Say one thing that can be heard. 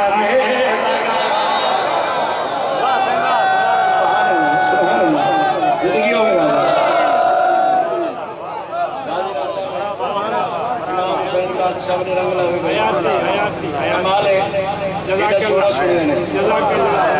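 A man chants loudly and passionately through a microphone and loudspeakers, in an open echoing space.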